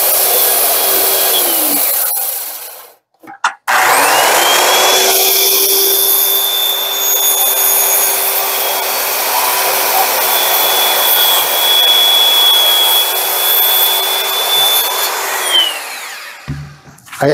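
A circular saw whines loudly and cuts through wood, then winds down.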